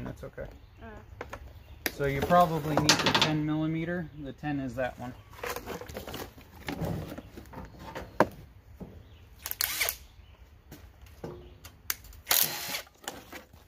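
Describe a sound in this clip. Metal parts click and clank as hands work on a small engine.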